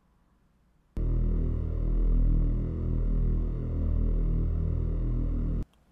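A low synthesized drone of many slightly detuned buzzing tones hums and beats steadily, then cuts off.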